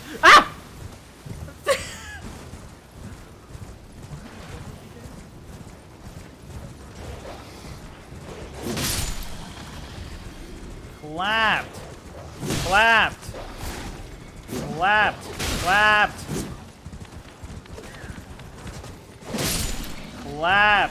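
A horse gallops with soft thudding hooves.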